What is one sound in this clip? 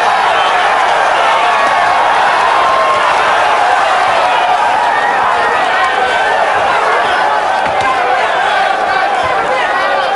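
A crowd murmurs and cheers in a large hall.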